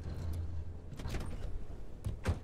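A car door clunks open.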